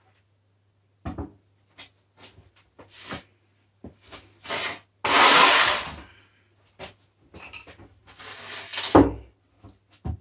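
A wooden board knocks and scrapes.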